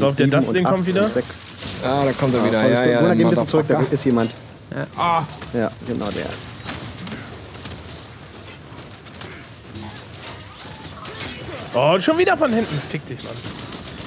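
Two young men talk with animation into microphones.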